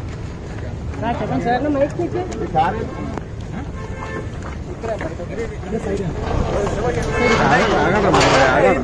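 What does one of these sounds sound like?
Several men talk over each other close by, in a jostling crowd outdoors.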